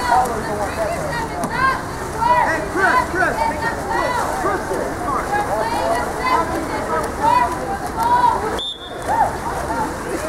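Water splashes as swimmers thrash about in a pool.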